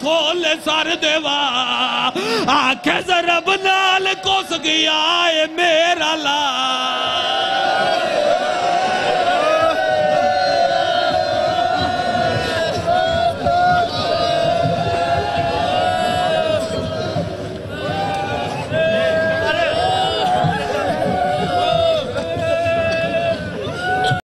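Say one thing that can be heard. A man sings a lament loudly through a loudspeaker.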